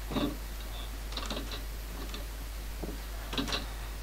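A wooden door clicks open.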